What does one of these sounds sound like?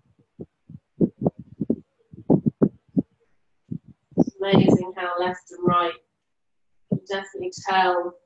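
A woman speaks calmly and softly, heard through an online call.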